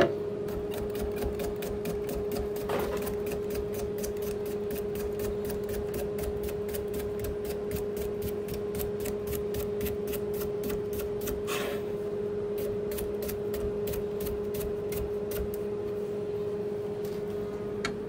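A knife taps quickly on a cutting board as cucumber is sliced.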